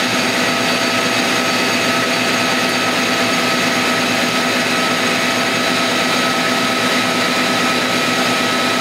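A cutting tool scrapes along a turning metal bar.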